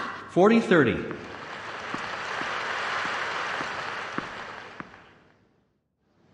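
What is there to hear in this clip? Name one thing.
A crowd applauds, then fades away.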